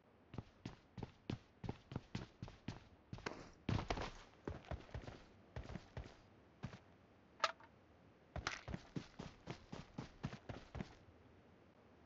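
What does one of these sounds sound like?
Footsteps thud quickly on the ground.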